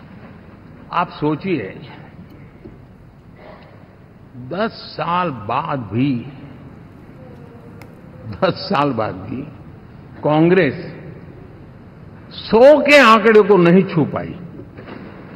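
An elderly man speaks forcefully into a microphone.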